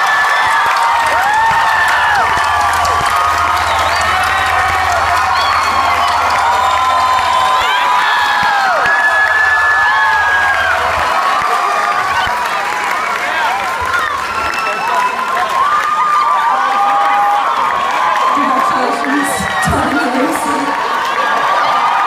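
A rock band plays live through loudspeakers.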